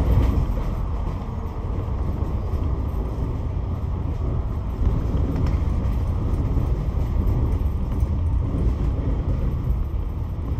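Cars pass by on the road.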